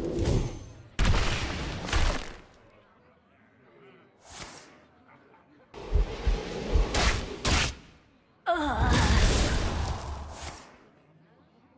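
Sharp impact effects crash and clang during attacks.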